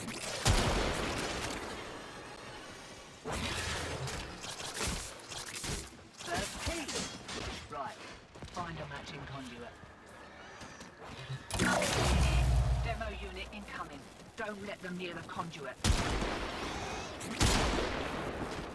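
Energy weapons fire and blast in sudden bursts.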